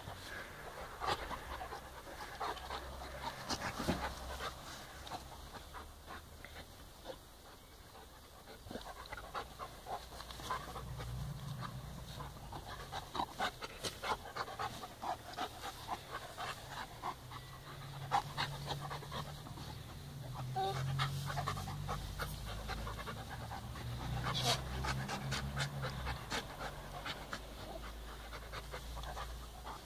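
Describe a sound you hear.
Dogs' paws and bodies rustle and thump on grass.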